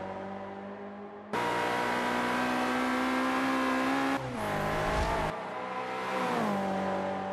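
A racing car engine roars loudly at high revs.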